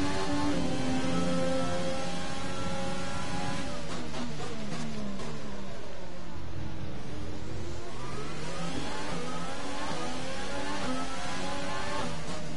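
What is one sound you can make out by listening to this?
A racing car engine screams at high revs, drops in pitch while braking, then climbs again as it accelerates.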